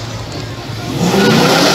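A car engine revs loudly close by.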